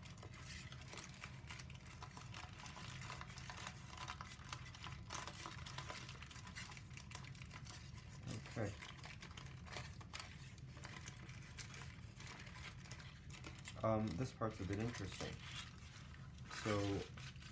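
Stiff paper crinkles and rustles as it is folded by hand.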